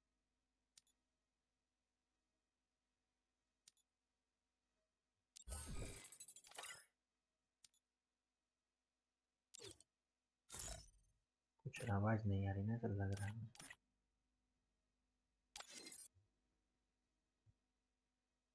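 Game menu buttons click.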